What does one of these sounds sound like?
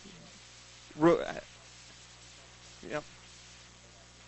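A young man speaks in short bursts.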